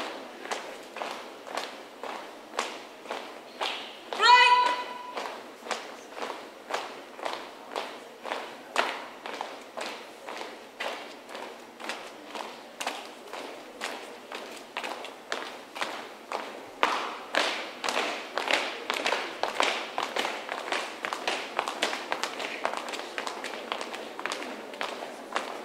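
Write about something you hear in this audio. Many feet stamp in a steady marching rhythm on hard ground outdoors.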